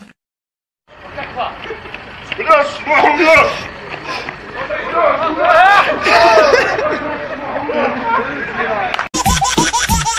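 Men shout and laugh loudly outdoors nearby.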